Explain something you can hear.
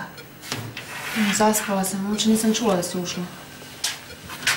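A woman speaks quietly near the end.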